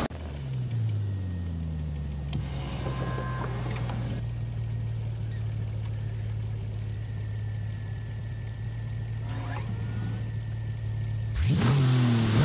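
A sports car engine idles with a low, steady hum.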